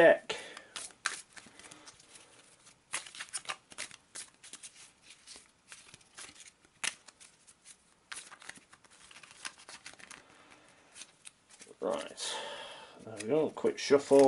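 Cards rustle and tap as a hand handles a deck.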